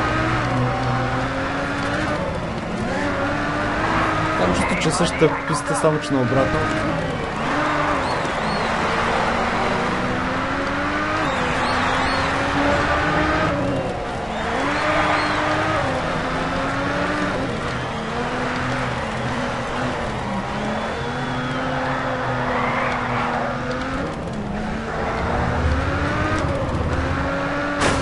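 A racing car engine roars and revs up and down through the gears.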